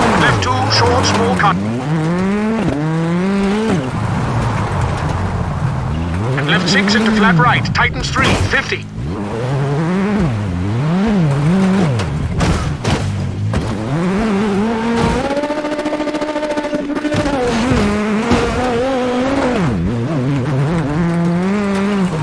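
A rally car engine revs hard, rising and falling in pitch as gears change.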